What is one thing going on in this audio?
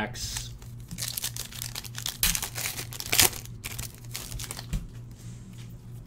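Plastic wrapping crinkles and rustles in hands.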